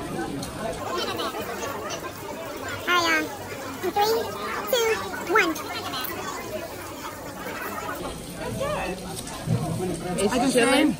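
A crowd of diners chatters in the background.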